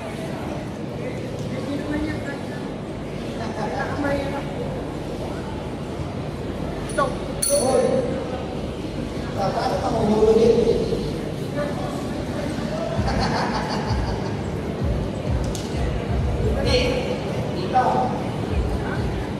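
A crowd murmurs and chatters nearby in a large echoing hall.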